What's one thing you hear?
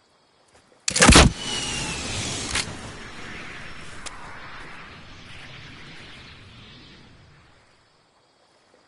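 An explosion booms and then slowly rumbles away.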